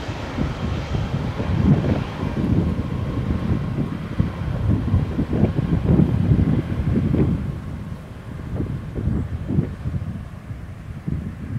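A jet airliner roars loudly as it lands and rolls down a runway.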